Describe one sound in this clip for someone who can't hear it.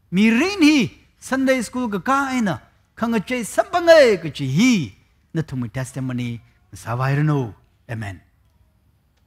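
A middle-aged man speaks with animation through a headset microphone.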